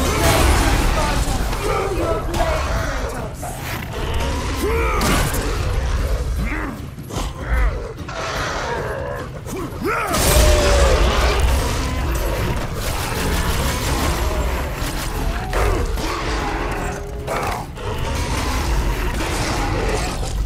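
A beast roars and snarls.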